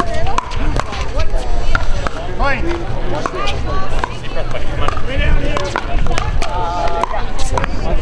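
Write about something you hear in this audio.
A pickleball paddle hits a hollow plastic ball with sharp pops.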